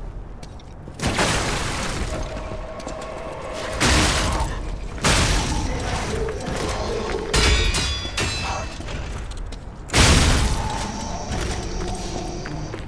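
Blades clash and strike hard in a fight.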